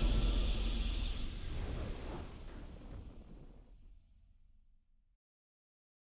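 A triumphant game victory sound rings out and slowly fades away.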